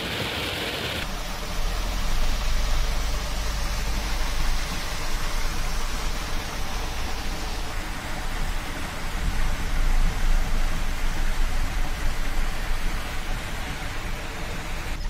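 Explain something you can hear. Floodwater gushes and churns loudly.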